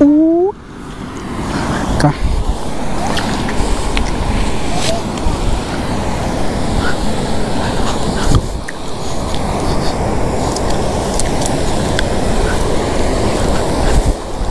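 Water laps against rocks nearby.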